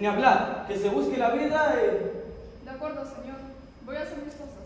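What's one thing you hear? A man speaks loudly and theatrically on a stage in a large hall.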